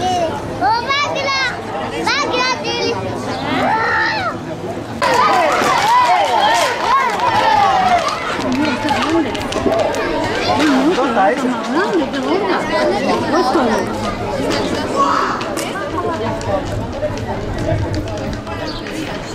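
A crowd of men and women shouts and calls out outdoors.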